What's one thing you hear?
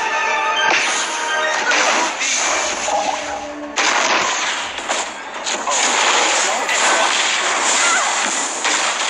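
Magic blasts and crackling effects burst from a fast-paced game.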